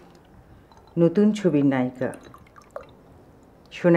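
Liquid pours into a glass.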